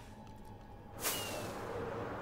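A firework rocket launches with a sharp whoosh.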